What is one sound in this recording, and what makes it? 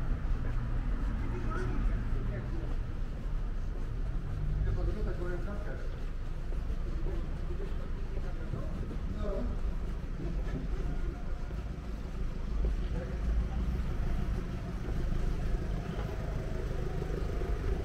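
Footsteps tap on a pavement outdoors.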